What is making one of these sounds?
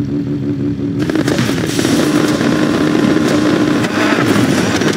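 Race car engines roar as the cars launch forward.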